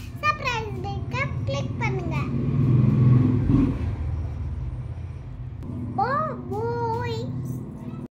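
A young girl speaks close by in a high, lively voice.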